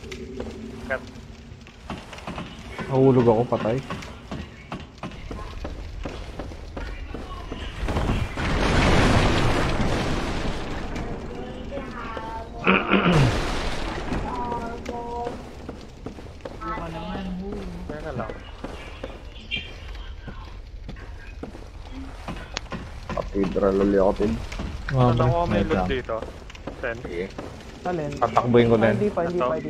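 Armoured footsteps clatter on stone.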